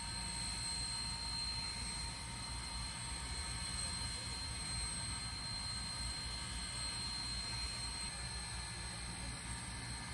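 A steam locomotive stands idling with a soft hiss of steam.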